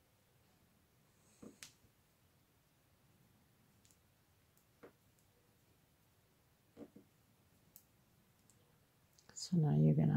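Yarn rustles softly as a crochet hook pulls loops through.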